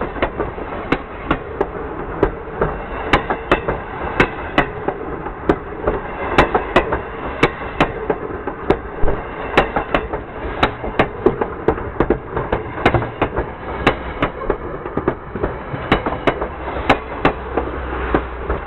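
Train wheels clack sharply over rail joints.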